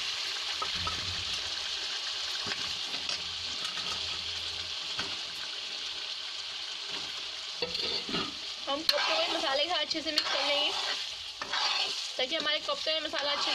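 A metal spoon scrapes against a pan.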